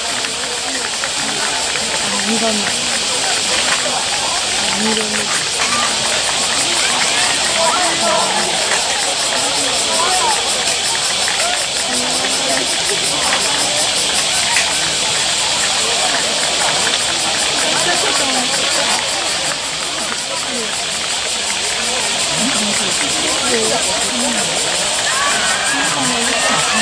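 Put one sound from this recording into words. A crowd of spectators cheers and shouts loudly outdoors.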